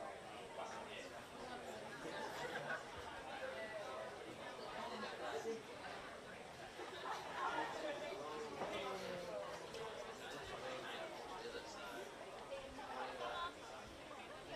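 Several adults talk calmly outdoors.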